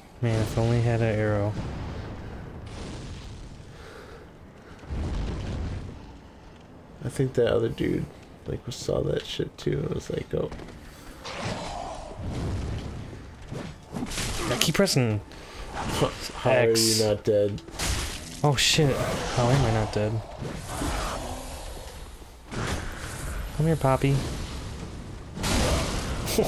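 A fireball bursts with a roaring whoosh.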